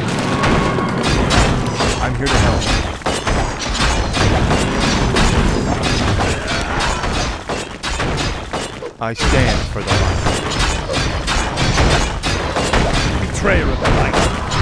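Spells crackle and weapons clash in a fast game battle.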